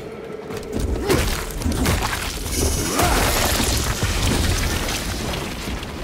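A creature bursts with a wet, loud splatter.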